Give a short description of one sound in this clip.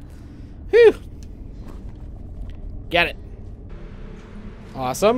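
A young man makes short, loud exclamations close to a microphone.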